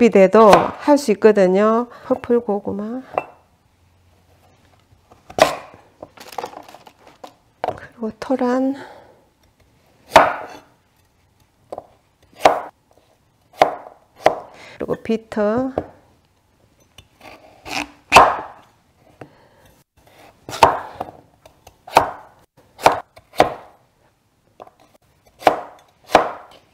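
A knife chops through vegetables on a wooden board with sharp knocks.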